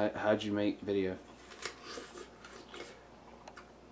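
A young man bites and chews crunchily on an apple.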